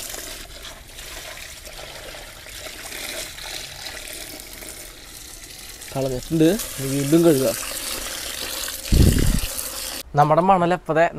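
Water from a hose splashes and swirls in a tub.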